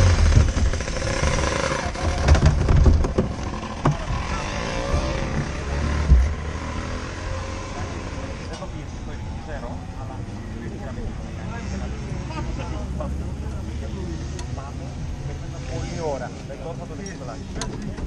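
Other kart engines idle and rev nearby.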